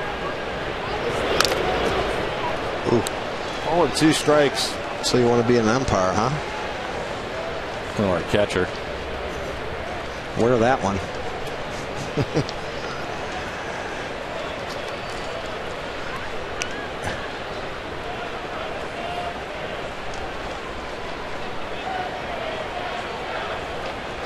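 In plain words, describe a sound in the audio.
A large crowd murmurs steadily in an open stadium.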